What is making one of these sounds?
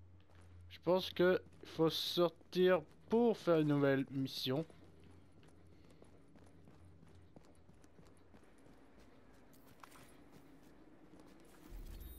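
Footsteps crunch as a person walks, first indoors and then on snow.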